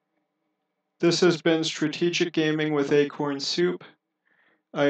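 A young man speaks with animation close to a headset microphone.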